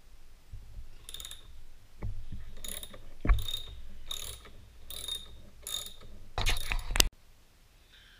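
A ratchet wrench clicks in quick bursts as a bolt is turned.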